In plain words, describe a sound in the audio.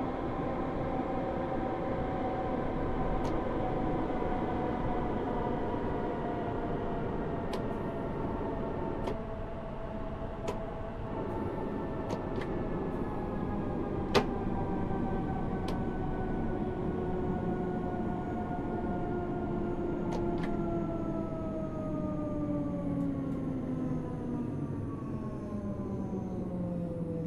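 An electric train motor whines, falling slowly in pitch as the train slows down.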